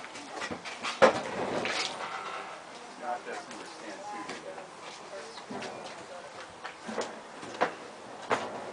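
Wooden crates knock and clatter as men handle them.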